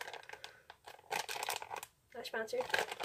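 A wrapper crinkles in a girl's hands.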